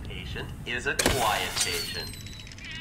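A thrown object whooshes through the air.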